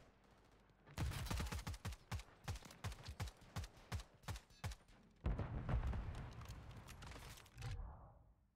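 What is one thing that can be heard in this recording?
Gunshots crack rapidly from a game.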